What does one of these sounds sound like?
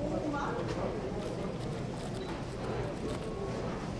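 Plastic wrap rustles as a hand lifts it.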